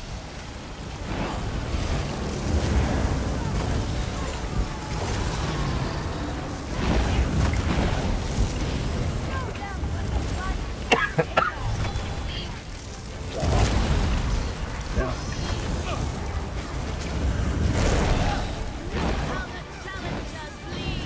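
Heavy magical blasts boom and rumble.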